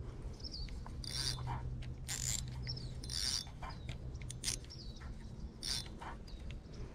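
A fishing reel clicks and whirs as line is handled.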